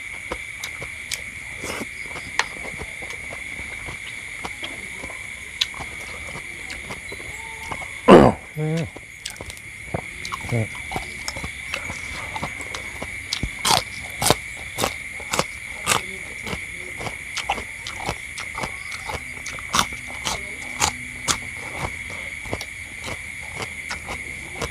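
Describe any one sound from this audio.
A middle-aged man chews food with wet, smacking mouth sounds.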